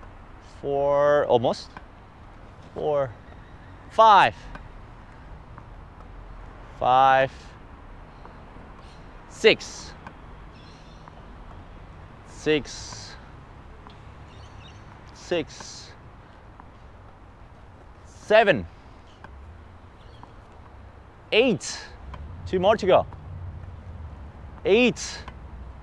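A tennis racket strikes a ball with a sharp ringing pop, again and again.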